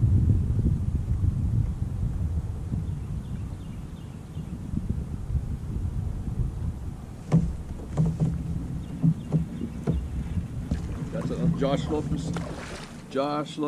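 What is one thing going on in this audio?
Wind rumbles outdoors across open water.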